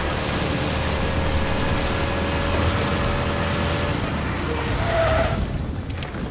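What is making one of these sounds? A motorcycle engine roars steadily.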